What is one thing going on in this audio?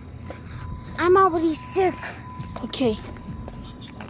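A young child speaks loudly and excitedly close by.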